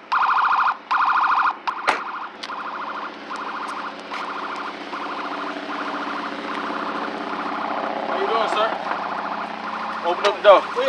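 A car alarm beeps in rapid, repeated bursts.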